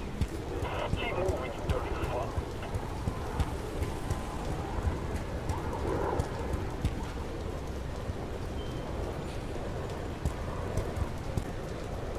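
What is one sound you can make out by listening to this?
Footsteps run on wet pavement.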